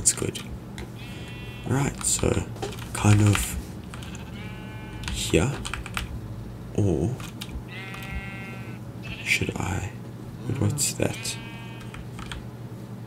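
A sheep bleats nearby.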